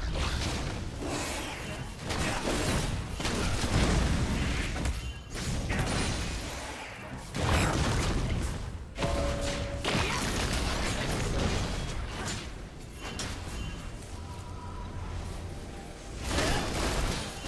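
Video game spell effects whoosh and blast during a fight.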